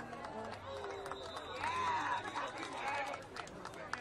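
A referee's whistle blows briefly.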